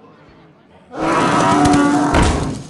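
A magical whoosh and chime ring out.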